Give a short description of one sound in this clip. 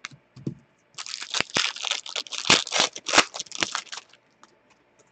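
Trading cards rustle and click as they are sorted by hand.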